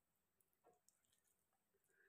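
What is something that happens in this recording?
A spoon scrapes filling from a bowl.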